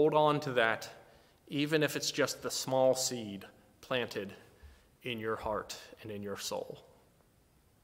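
A middle-aged man speaks calmly and directly, close to a microphone.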